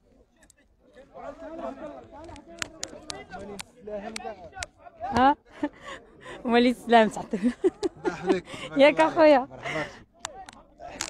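A young man talks and laughs close by, outdoors.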